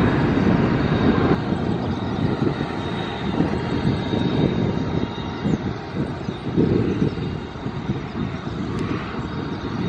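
A large jet airliner rumbles in the distance as it rolls down a runway.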